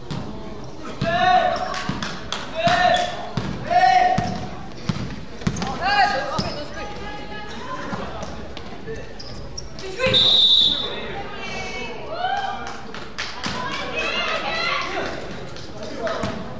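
Young players shout to each other in a large echoing gym.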